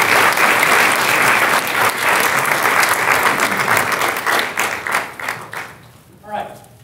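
An audience applauds loudly in a large hall, then the clapping fades.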